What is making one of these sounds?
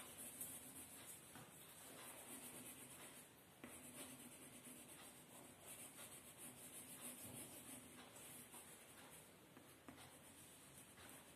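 A crayon scratches rapidly across paper.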